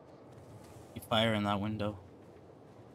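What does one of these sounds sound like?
A young man speaks briefly and with animation close to a microphone.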